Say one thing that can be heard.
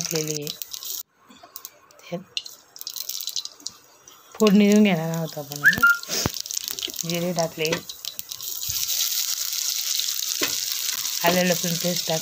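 Seeds crackle and sizzle in hot oil in a pan.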